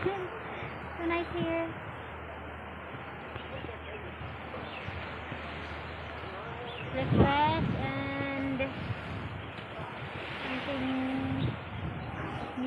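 Waves wash gently against rocks nearby.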